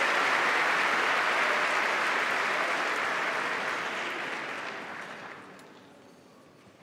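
A large audience applauds in an echoing hall, then the applause fades.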